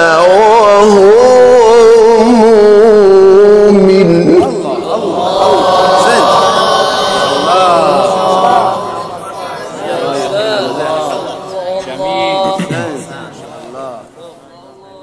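A young man chants in a melodic, drawn-out voice through a microphone.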